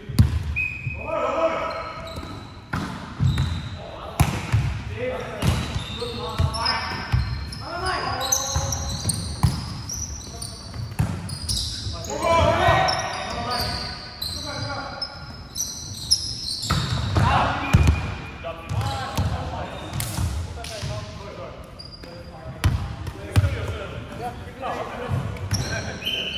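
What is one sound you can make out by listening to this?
A volleyball is struck hard again and again, echoing in a large hall.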